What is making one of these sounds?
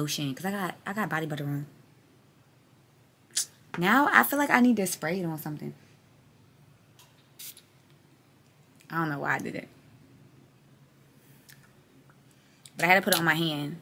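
A young woman talks casually and close up, with pauses.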